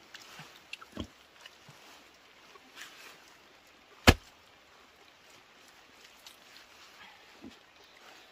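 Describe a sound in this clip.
Flat stones scrape and thud as they are set into soft soil.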